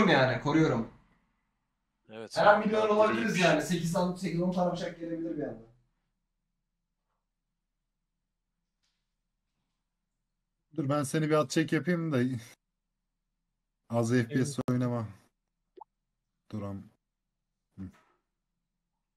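A young man talks casually into a close microphone, in bursts with pauses.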